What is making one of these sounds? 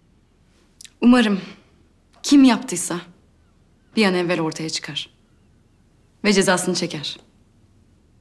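A young woman answers with animation, close by.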